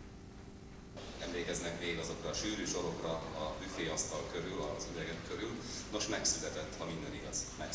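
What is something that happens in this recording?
A crowd murmurs in a hall.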